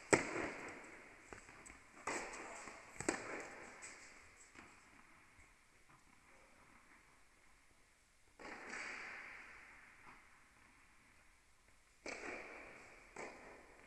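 Tennis balls are struck with rackets, ringing out in a large echoing hall.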